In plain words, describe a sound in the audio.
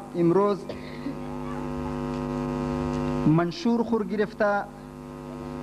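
A man chants loudly into a microphone, holding long drawn-out notes through a loudspeaker.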